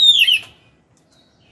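A small bird sings loud, bright whistling calls close by.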